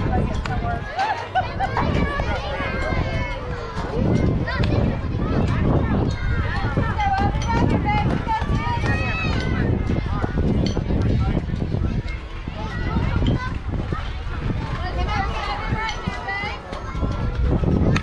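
Young girls chant and cheer loudly outdoors.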